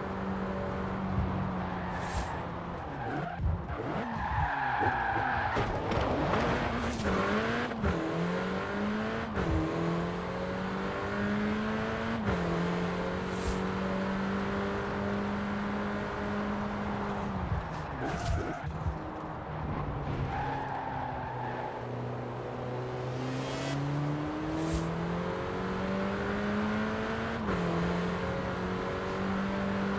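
A car engine revs up and down, rising in pitch and dropping at each gear change.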